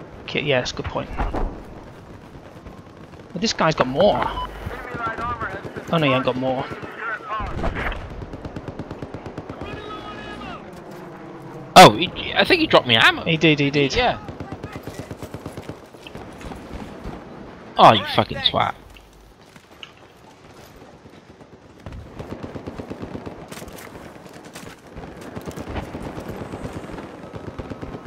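Rapid gunfire rattles nearby.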